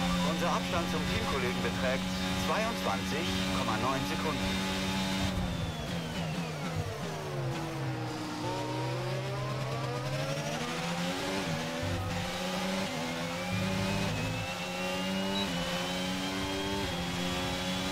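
A racing car engine screams at high revs, drops in pitch under braking, then climbs again through the gears.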